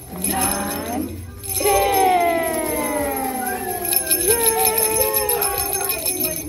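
Small jingle bells rattle and shake close by.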